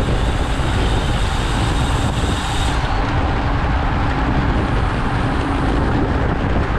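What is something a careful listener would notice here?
Bicycle tyres rumble over a rough road.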